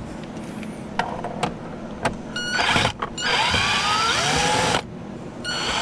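A screwdriver scrapes and clicks against plastic trim.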